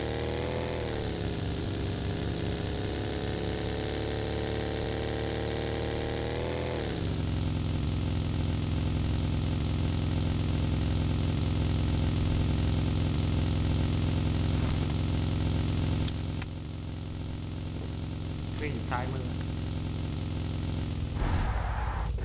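A buggy engine drones steadily, rising and falling in pitch as it revs.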